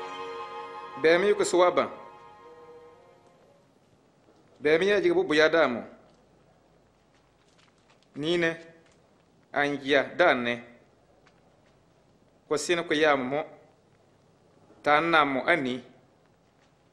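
A man speaks calmly in short phrases with pauses.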